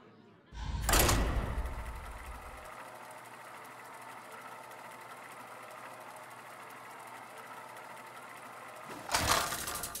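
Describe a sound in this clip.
A mechanical wheel whirs and rattles steadily.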